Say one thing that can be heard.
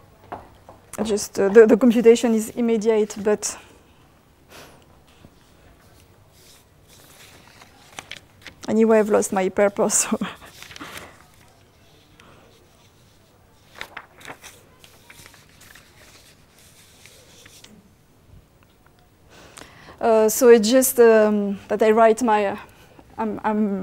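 A woman lectures through a microphone in an echoing hall, speaking in bursts with pauses.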